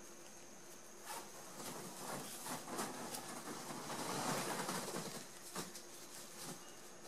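Ribbon rustles and crinkles between fingers.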